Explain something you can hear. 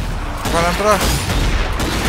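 A gun fires rapid shots.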